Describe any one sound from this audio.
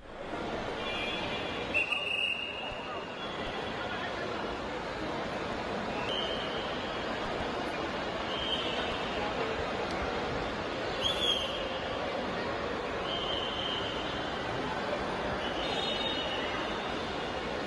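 A handheld scanner beeps again and again.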